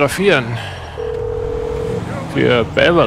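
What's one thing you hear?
A phone gives a short ringing tone.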